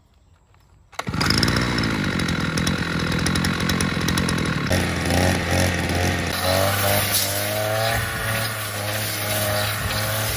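A petrol brush cutter engine roars loudly and steadily close by.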